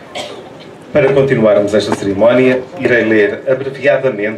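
A man speaks calmly through a microphone and loudspeakers.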